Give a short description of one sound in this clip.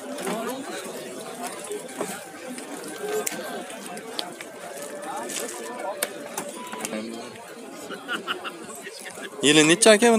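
Several men talk in the background outdoors.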